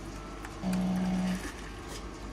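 A coffee machine gives a short beep.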